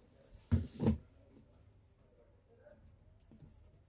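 A ribbon rustles as hands untie it.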